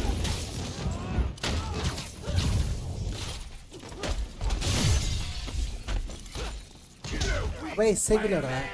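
Punches and blows land with heavy thuds.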